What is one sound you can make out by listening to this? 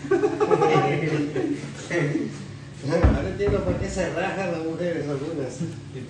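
A middle-aged man laughs close by.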